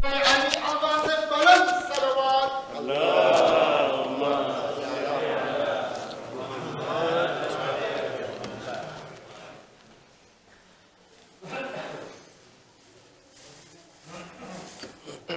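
A man speaks calmly through a microphone in a softly echoing room.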